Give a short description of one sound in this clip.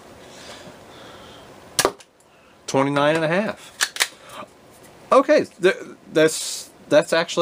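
A plastic toy blaster clicks and rattles as it is handled.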